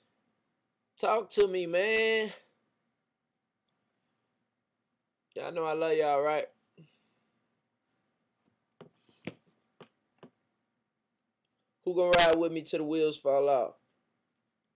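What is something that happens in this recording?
A young man sings short phrases close to the microphone.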